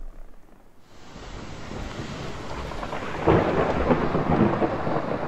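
Rain pours steadily.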